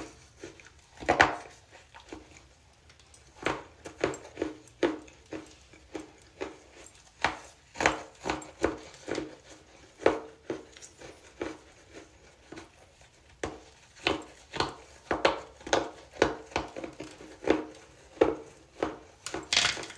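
A woman smacks her lips while eating, close by.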